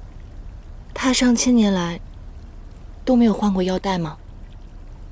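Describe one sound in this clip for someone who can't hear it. Another young woman speaks up close, asking questions.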